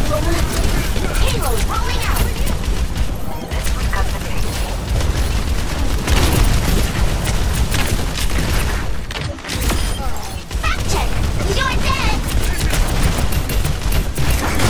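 Pistols fire rapid shots.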